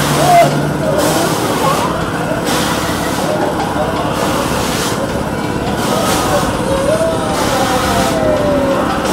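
A spinning fairground ride hums and whirs steadily.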